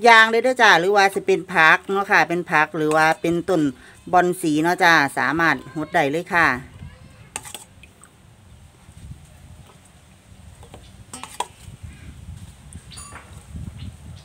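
Liquid pours from a cup into a bottle with a gurgle.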